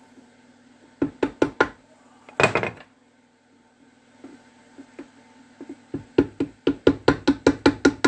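A mallet knocks sharply on a metal part, again and again.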